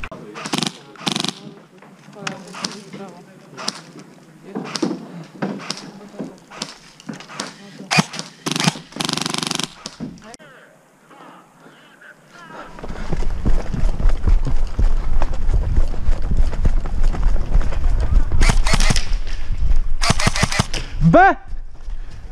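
An airsoft gun fires sharp bursts of shots close by.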